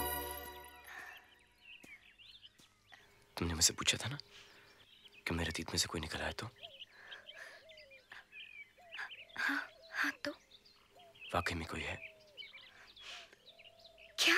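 A man speaks softly and earnestly, close by.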